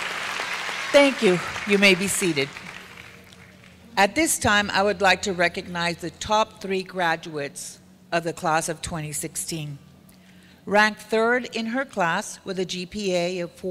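A middle-aged woman speaks calmly into a microphone over a loudspeaker.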